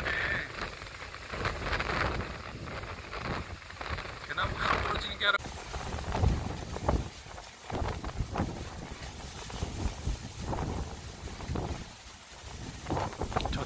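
Strong wind gusts through trees and bushes, rumbling and buffeting loudly.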